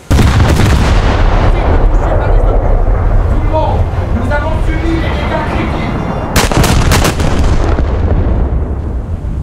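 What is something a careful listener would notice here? Shells explode with deep rumbling booms.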